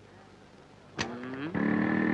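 A car door clunks open.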